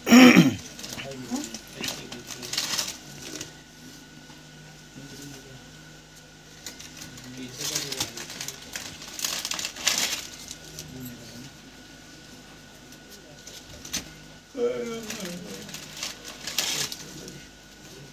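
A man rustles plastic wrapping and a wicker basket.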